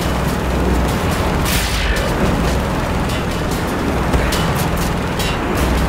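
A helicopter's rotor thumps steadily.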